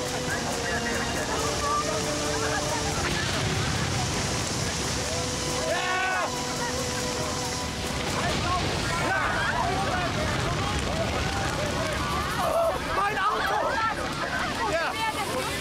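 A crowd of men and women shouts in alarm.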